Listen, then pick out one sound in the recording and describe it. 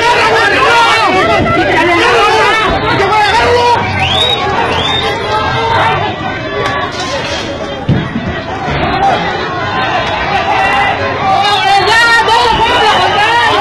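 A crowd of men and women shouts excitedly outdoors.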